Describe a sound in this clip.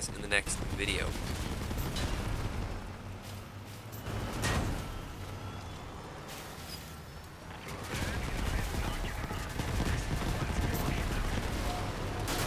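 A heavy vehicle's engine rumbles as it drives over rough ground.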